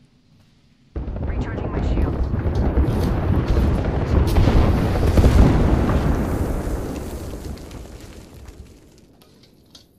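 A loud rushing whoosh swells and slowly fades.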